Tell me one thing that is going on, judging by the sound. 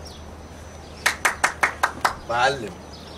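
A man claps his hands several times.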